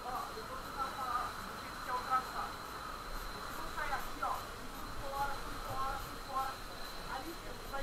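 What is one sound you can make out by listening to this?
A crowd of young men chants loudly nearby.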